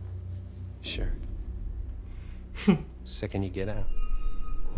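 A man replies calmly.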